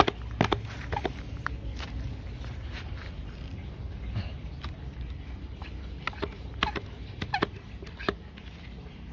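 Plastic knocks and clicks as a hand sprayer is handled up close.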